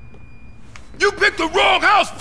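A man speaks in a deep voice.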